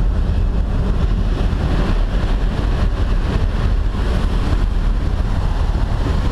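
Loud wind rushes and buffets past an open aircraft door.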